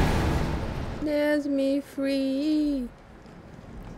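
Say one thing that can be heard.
A young woman speaks into a close microphone in drawn-out, sing-song tones.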